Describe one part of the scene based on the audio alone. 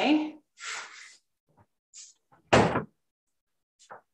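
A metal pot thuds down onto a counter.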